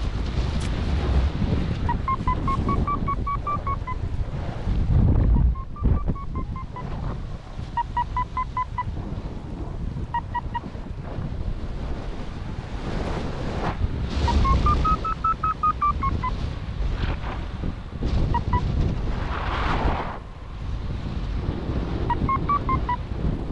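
Wind rushes and buffets loudly past a paraglider in flight.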